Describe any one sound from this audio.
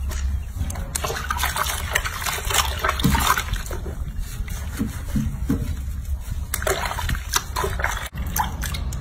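Water splashes and sloshes in a basin.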